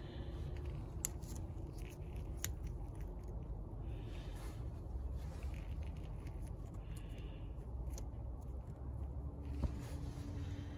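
A metal socket tool clicks and taps against engine parts.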